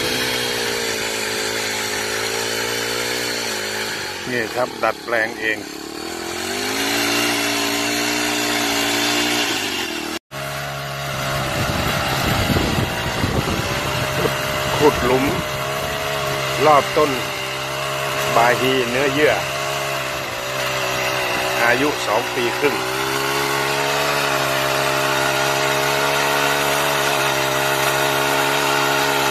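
A trimmer line whirs and slaps against soil and grass.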